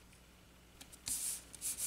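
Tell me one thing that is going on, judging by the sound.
Paper rustles softly as it is pressed down onto card.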